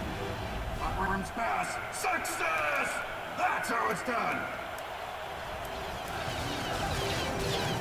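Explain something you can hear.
A crackling electric spell zaps in a video game.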